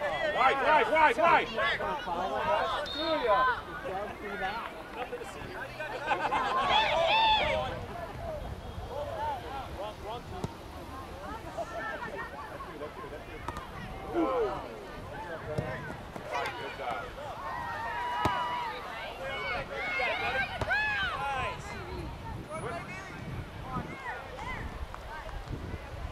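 Young players shout and call to each other outdoors on an open field.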